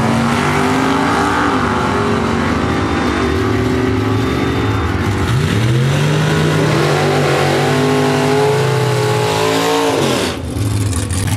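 Loud race car engines roar down a track, their pitch climbing and dropping with each gear change.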